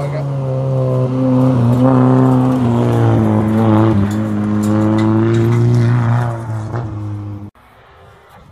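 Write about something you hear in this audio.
A rally car engine roars loudly as it speeds past and changes pitch.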